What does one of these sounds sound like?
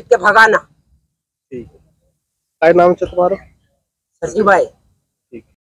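An elderly woman speaks with animation close to a microphone.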